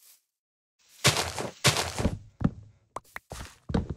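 Leaves rustle loudly.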